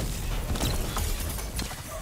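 A loud energy blast roars and crackles nearby.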